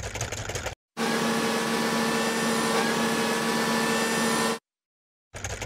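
An electric lamp hums steadily.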